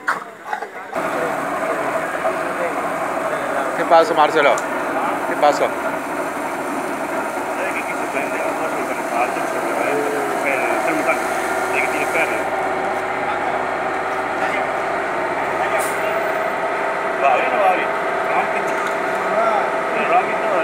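A fire truck engine runs steadily close by.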